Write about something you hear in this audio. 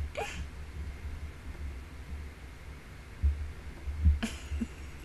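A woman speaks briefly and softly into a close microphone.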